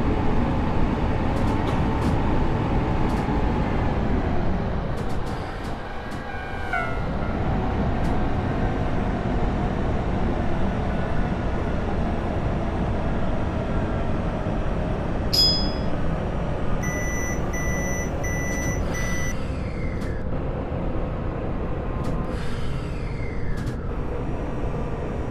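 An electric train motor whines, its pitch shifting as the train gathers speed.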